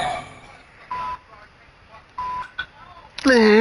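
Short electronic beeps sound as a game menu is navigated.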